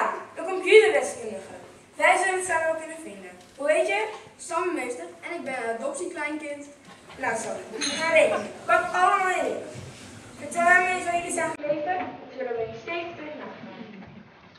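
A young woman speaks loudly and expressively on a stage in an echoing hall.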